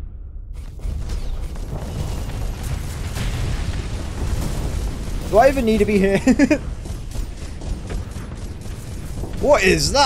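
Weapons fire in rapid bursts.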